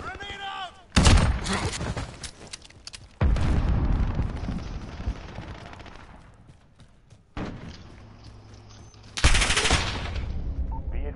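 Gunshots fire in loud, rapid bursts.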